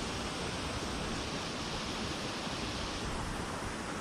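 Water trickles steadily over stones.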